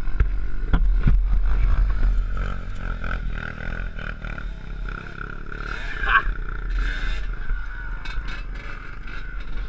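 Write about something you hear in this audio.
Another dirt bike engine revs nearby.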